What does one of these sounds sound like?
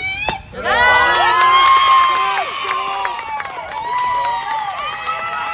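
A crowd cheers loudly after the hit.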